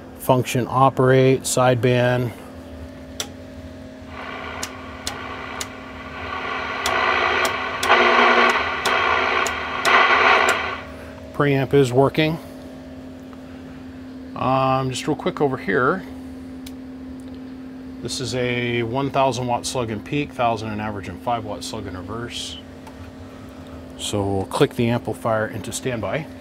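An amplifier hums steadily.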